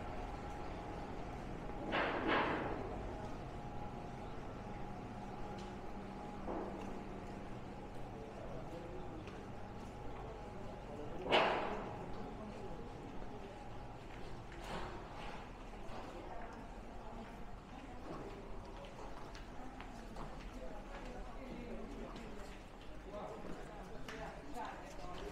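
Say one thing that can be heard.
Men and women chat quietly in the background.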